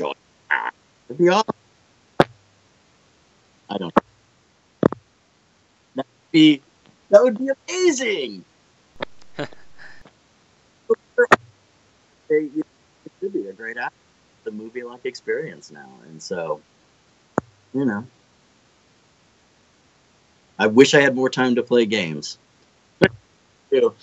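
A man speaks casually over an online call, with pauses.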